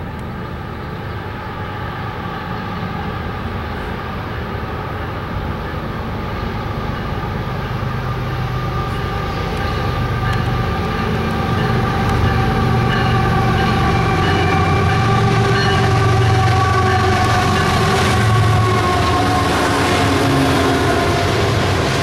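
A diesel locomotive's horn blows loudly in long, steady blasts.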